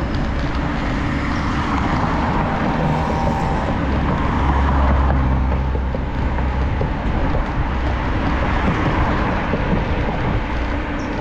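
A car drives past on the road nearby.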